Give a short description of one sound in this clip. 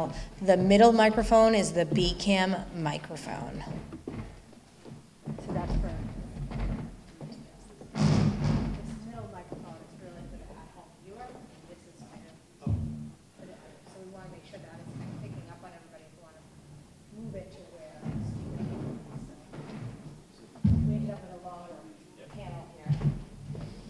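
A woman speaks through a microphone in a large echoing hall.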